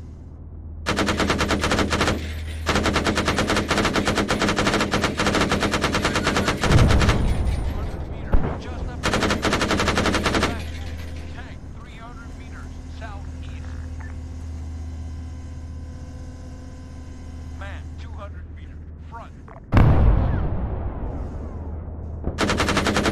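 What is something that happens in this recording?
A heavy cannon fires in rapid bursts.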